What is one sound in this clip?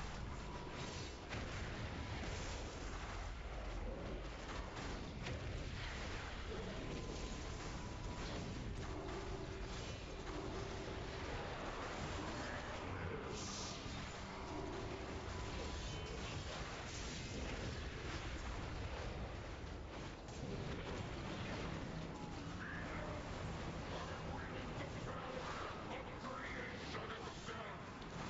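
Magic spells crackle and whoosh during a fast battle.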